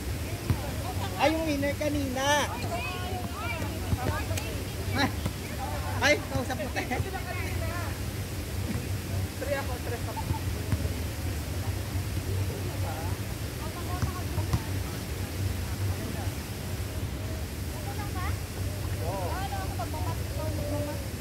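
Young people shout and call out to each other outdoors.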